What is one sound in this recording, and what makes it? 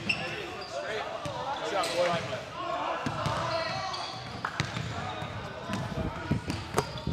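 Basketballs bounce on a hard floor in a large echoing hall.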